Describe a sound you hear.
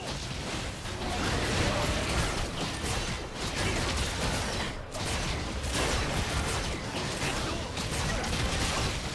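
Magic blasts and clashing effects crackle and burst in a fight.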